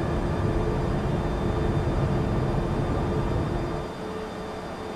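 Wind rushes loudly past the lowered landing gear.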